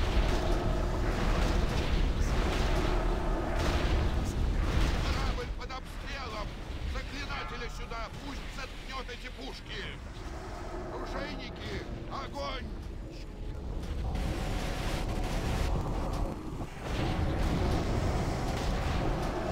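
Magic blasts and fiery impacts crash and whoosh during a battle.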